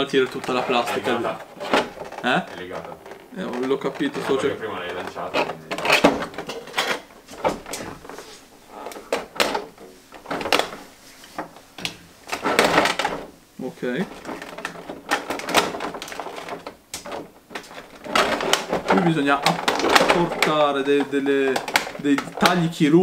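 Stiff plastic packaging crinkles and clicks in hands.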